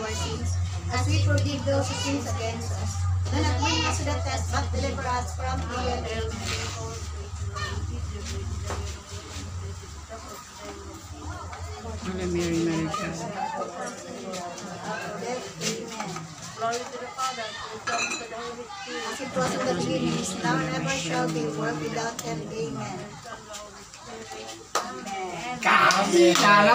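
An elderly woman speaks with animation close by.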